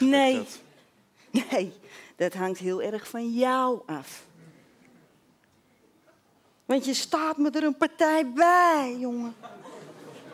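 A woman sings in short theatrical bursts.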